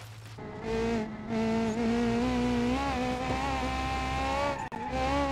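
A car engine revs high as a car accelerates.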